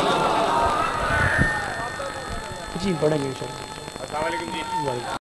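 A crowd of men chants loudly together in a large echoing hall.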